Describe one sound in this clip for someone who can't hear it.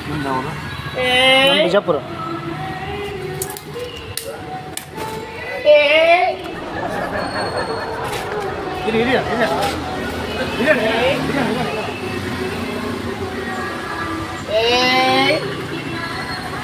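A woman shouts loudly with high, wailing cries.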